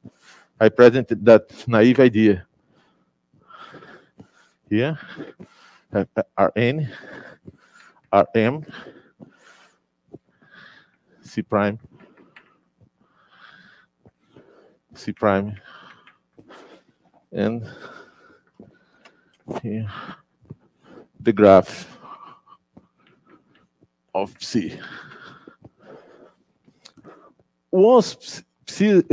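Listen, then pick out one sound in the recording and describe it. A man speaks calmly in short bursts, close by.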